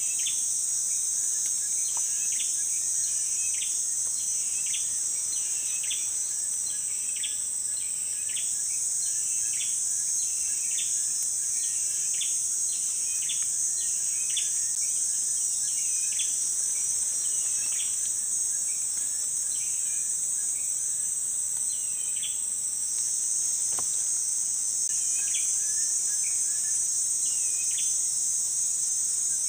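Leaves rustle softly as a branch is handled.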